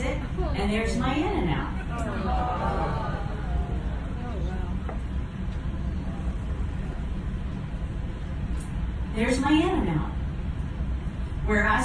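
A woman sings into a microphone, heard through a loudspeaker.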